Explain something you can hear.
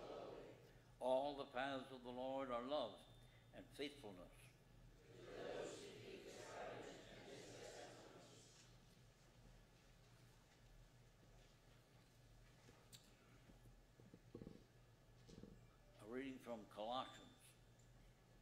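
An elderly man speaks slowly and calmly through a microphone in an echoing room.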